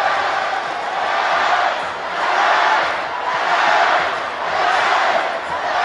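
A large crowd chants in rising and falling waves.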